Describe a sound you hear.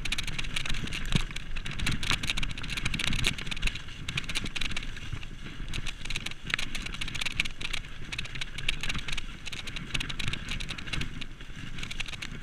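Bicycle tyres roll and crunch fast over a dirt trail.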